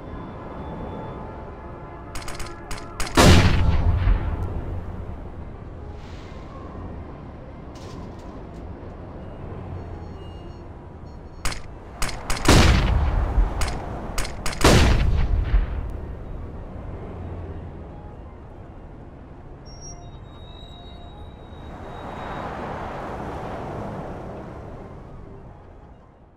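Footsteps tread steadily across a hard rooftop.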